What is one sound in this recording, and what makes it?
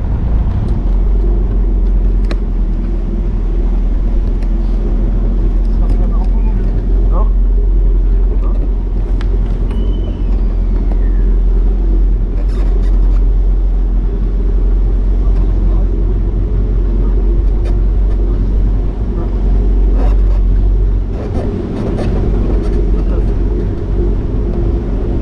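Tyres rumble over cobblestones.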